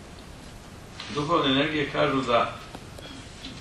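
A man speaks briefly and clearly, close by.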